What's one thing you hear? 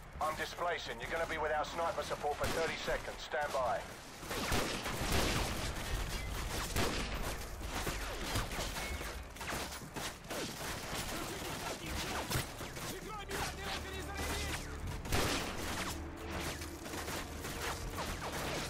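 Rifle shots crack sharply again and again.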